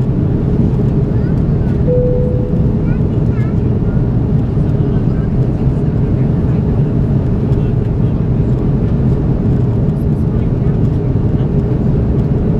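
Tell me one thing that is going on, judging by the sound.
Jet engines roar with a steady, deep rumble inside an airliner cabin.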